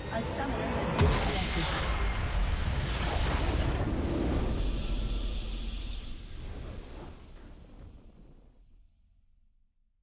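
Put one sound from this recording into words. A triumphant game fanfare swells and fades out.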